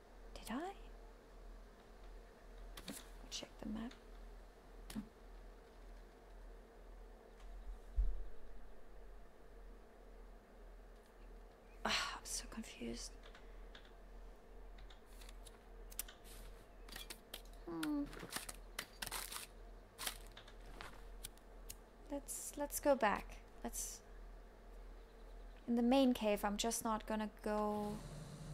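A woman speaks calmly and close into a microphone.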